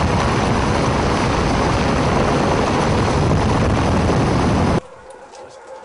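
A helicopter roars loudly overhead.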